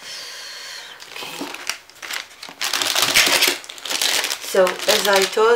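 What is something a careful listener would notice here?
Plastic wrap crinkles and rustles as a hand handles it.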